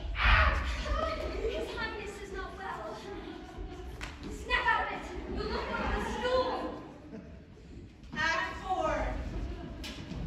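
Young performers call out loudly on a stage in a large echoing hall.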